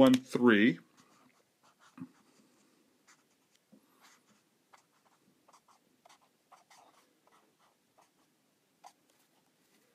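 A marker scratches and squeaks lightly across paper.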